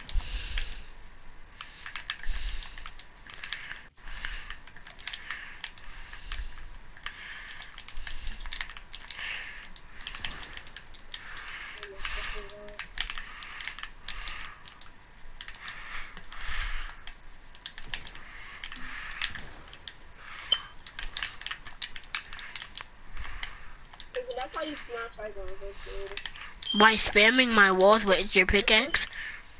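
Wooden building pieces snap into place in rapid, sharp clacks.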